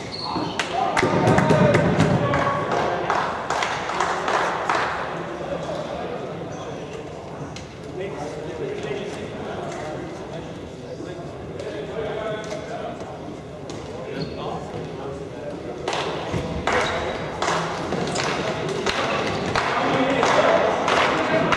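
Sticks click against a plastic ball.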